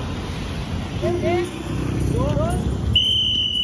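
Men call out loudly nearby, outdoors.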